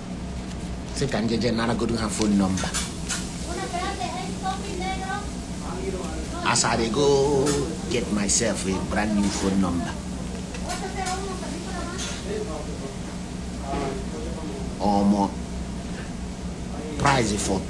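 A man talks with animation close to a phone microphone.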